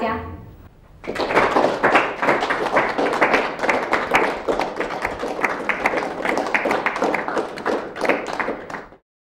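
A small group of people applaud steadily.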